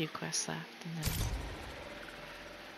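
A game menu sound plays as a button is selected.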